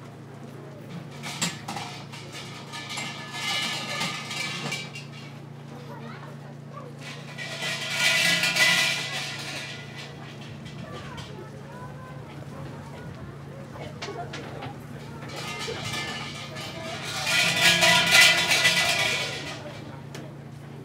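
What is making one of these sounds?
Hanging shrine bells rattle and jingle in short bursts.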